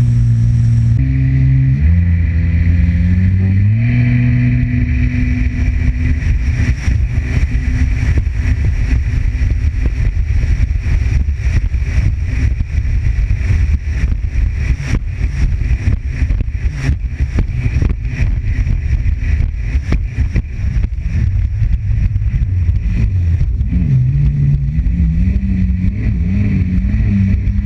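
A jet ski engine roars steadily and rises in pitch as it speeds up.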